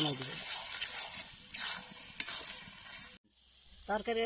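A metal spatula scrapes and stirs food in a metal pan.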